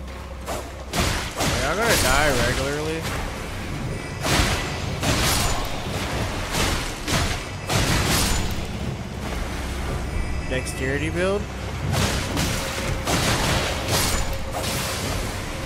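Sword blows clang and slash in a game fight.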